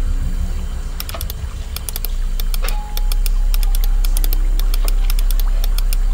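Combination lock dials click as they are turned.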